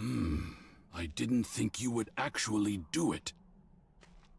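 A man speaks calmly in a deep voice.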